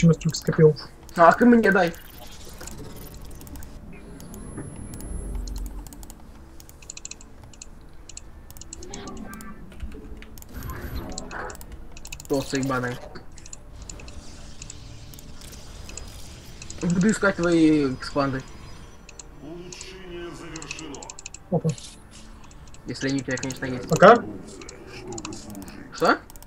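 Short electronic game sound effects chime and click.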